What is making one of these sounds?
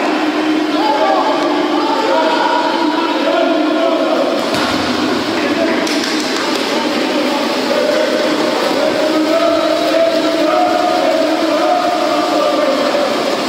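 Water splashes as swimmers kick and stroke through a pool.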